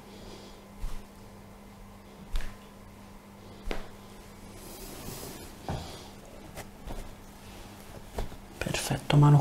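Clothing rustles softly as a person's arm is moved and stretched.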